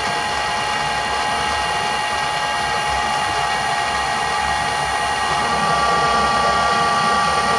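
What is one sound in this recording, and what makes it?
A lathe runs with a steady mechanical whine and hum.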